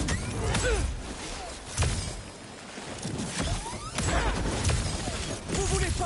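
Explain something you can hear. Metal limbs whoosh and clank through the air.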